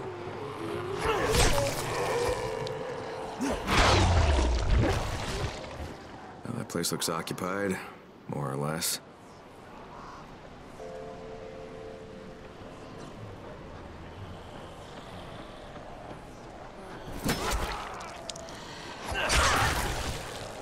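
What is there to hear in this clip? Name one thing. A blade strikes flesh with heavy wet thuds.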